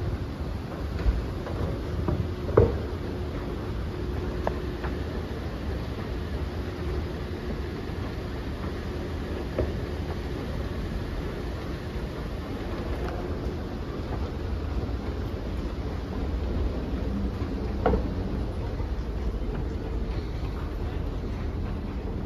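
An escalator hums and rumbles steadily in a large echoing hall.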